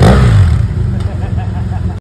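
A parallel-twin motorcycle pulls away.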